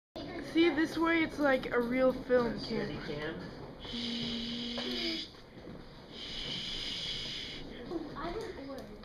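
A young girl talks and laughs excitedly close by.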